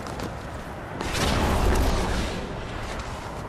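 A deep roaring rumble swells and fades.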